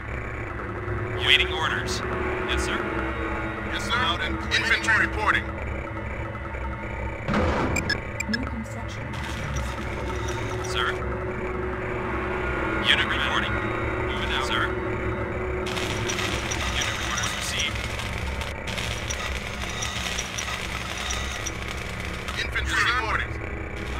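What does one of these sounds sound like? Small gunfire and explosions crackle in a game battle.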